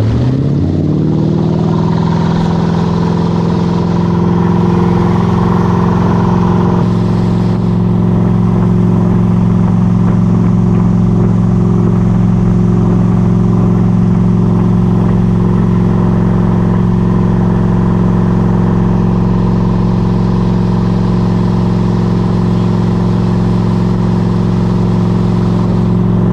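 A boat engine roars steadily, rising in pitch as it speeds up at first.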